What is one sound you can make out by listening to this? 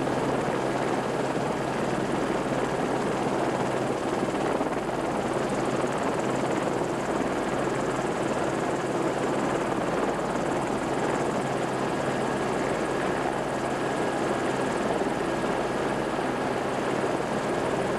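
A steam train rumbles along the track.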